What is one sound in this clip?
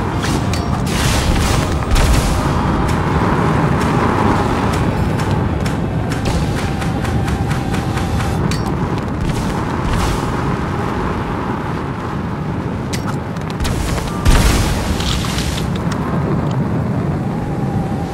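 Fiery blasts whoosh and burst in quick bursts.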